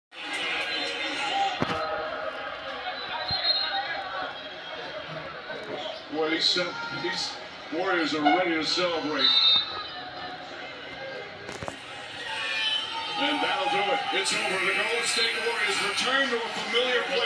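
A crowd cheers and roars through a television loudspeaker.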